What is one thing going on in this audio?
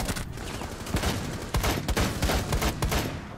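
Rapid gunshots crack in a game.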